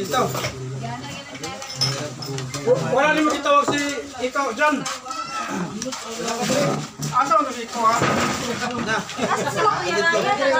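A serving spoon clinks against a metal tray.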